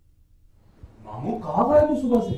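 A young man speaks loudly and agitatedly.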